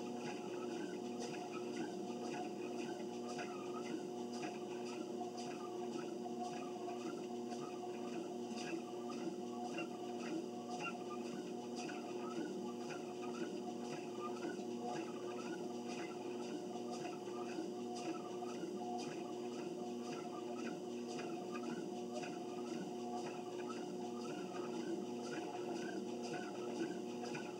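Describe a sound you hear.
Footsteps thud in a steady rhythm on a treadmill belt.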